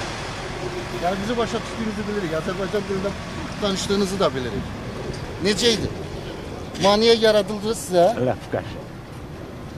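An elderly man speaks with emotion into microphones close by.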